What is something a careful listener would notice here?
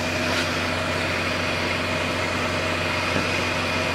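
A gas torch flame hisses steadily.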